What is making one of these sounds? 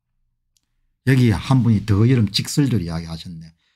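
An older man speaks with animation close to a microphone.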